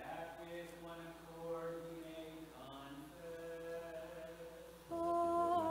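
A man chants in a steady, sung voice in an echoing hall.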